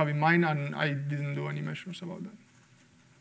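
A young man speaks calmly through a microphone in an echoing room.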